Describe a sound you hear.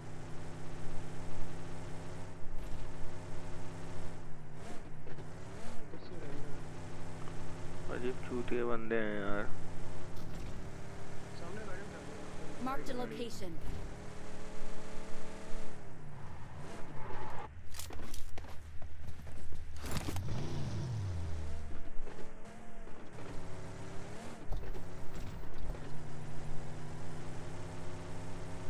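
A car engine hums steadily and revs as the car drives.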